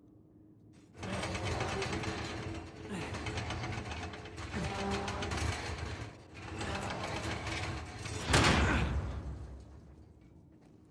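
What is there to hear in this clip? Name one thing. A heavy iron gate grinds upward.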